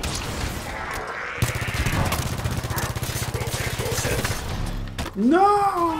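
A gun fires in quick bursts.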